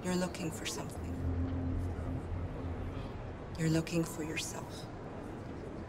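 A young woman speaks quietly and calmly, close by.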